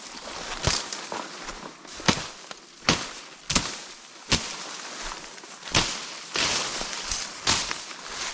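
Dry stems rustle and snap as they are pushed aside.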